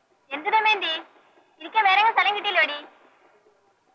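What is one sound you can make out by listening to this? A young woman sings with a wavering voice.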